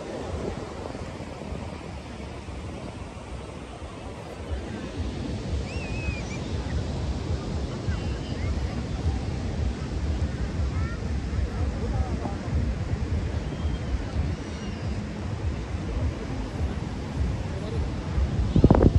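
A crowd of people chatter in the distance.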